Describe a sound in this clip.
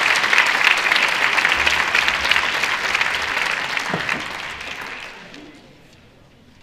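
An audience applauds loudly, then the clapping dies away.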